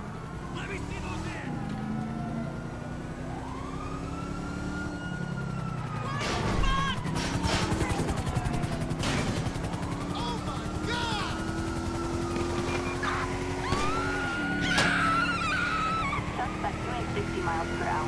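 A car engine revs steadily, rising in pitch and dropping as it shifts gears.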